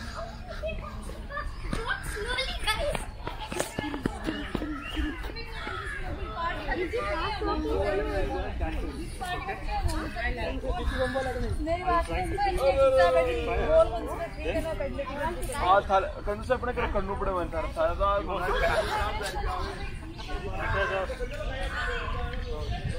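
Several adults talk nearby outdoors with animation.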